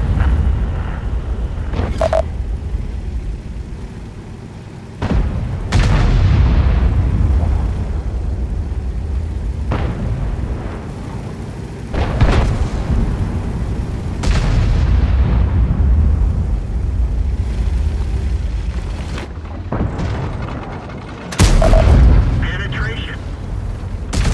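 A tank engine rumbles low and steady as tracks clank.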